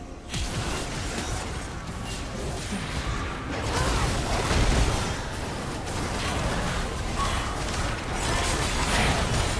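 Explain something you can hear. Video game spells crackle and boom in a busy battle.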